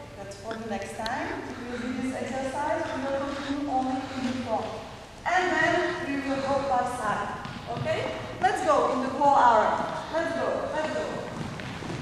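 A young woman speaks loudly to a group in a large echoing gym.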